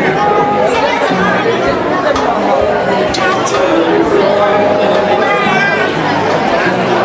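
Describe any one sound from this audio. A crowd of men and women talk over one another nearby.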